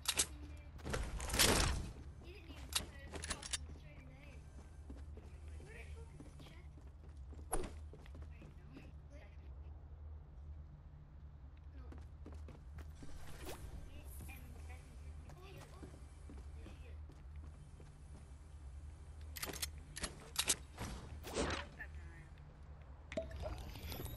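Footsteps thud on wooden floors and stairs.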